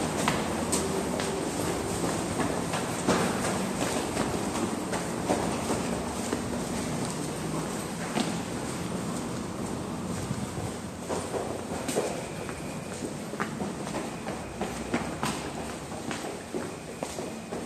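Footsteps climb and descend concrete stairs in an echoing tiled stairwell.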